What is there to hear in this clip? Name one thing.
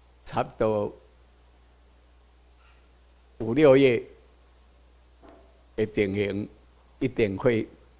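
An elderly man speaks slowly through a microphone and loudspeakers in a large room, with long pauses.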